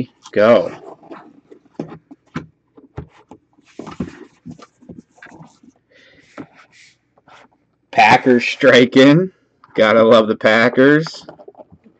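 A plastic case clicks and taps as hands handle it.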